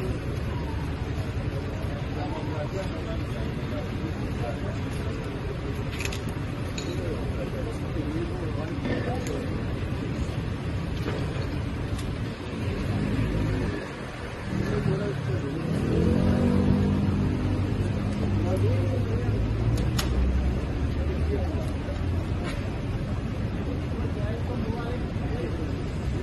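Men talk to each other in low voices nearby.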